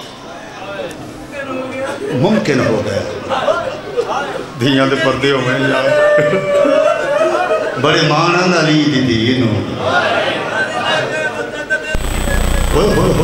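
A man speaks with passion into a microphone, his voice echoing through loudspeakers.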